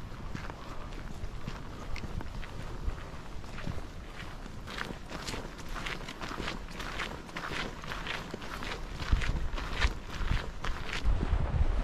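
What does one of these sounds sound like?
Footsteps crunch steadily on a dirt and gravel path.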